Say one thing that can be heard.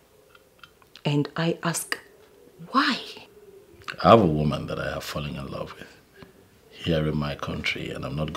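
A woman speaks sharply and with emotion, close by.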